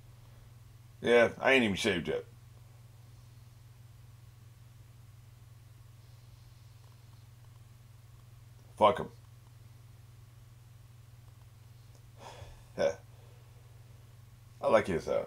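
An older man speaks in short bursts, close to a microphone.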